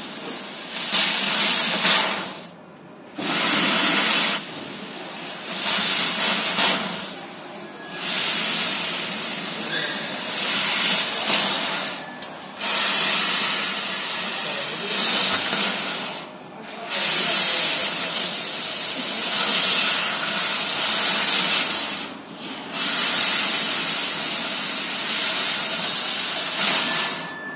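A laser cutting head hisses loudly in bursts, with short pauses as it moves between cuts.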